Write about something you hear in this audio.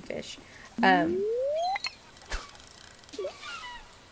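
A fishing line whirs out and plops into water.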